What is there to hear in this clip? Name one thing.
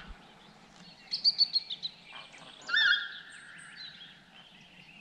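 Geese honk overhead.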